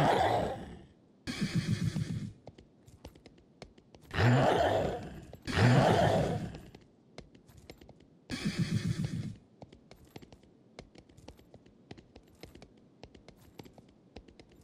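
Horse hooves clop steadily on a hard floor.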